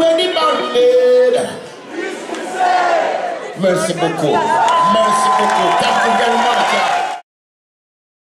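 An older man sings into a microphone.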